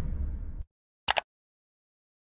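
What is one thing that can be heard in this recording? A mouse button clicks.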